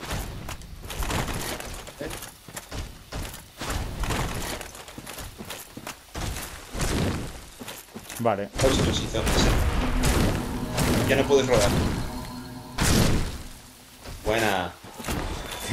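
Swords clash and thud against metal armour and shields.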